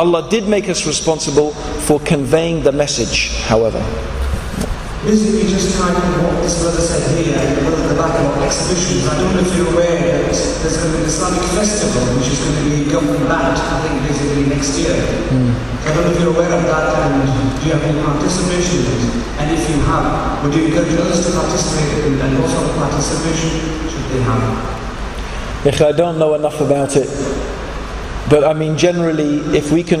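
A man speaks calmly into a microphone, heard through a loudspeaker.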